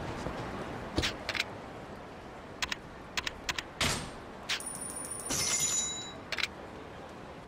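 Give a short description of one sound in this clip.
Short electronic beeps and clicks sound from a game menu.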